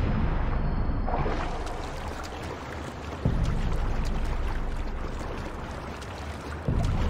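Water sloshes and splashes with swimming strokes.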